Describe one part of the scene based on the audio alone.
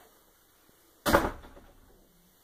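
A wooden door bangs shut nearby.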